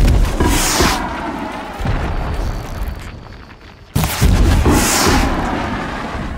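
Arrows whoosh through the air.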